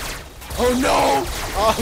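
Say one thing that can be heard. A laser weapon fires with a sharp buzz.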